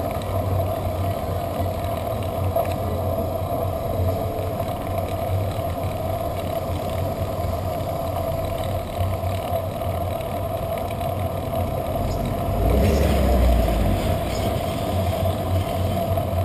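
Car engines idle and rumble nearby in traffic.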